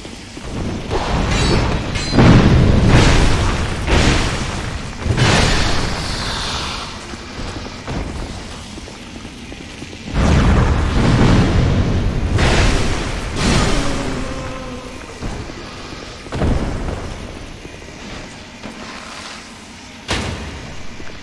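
A heavy sword strikes with loud impacts.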